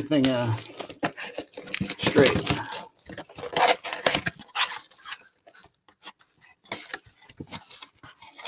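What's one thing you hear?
Plastic wrapping crinkles and rustles as hands tear open a pack.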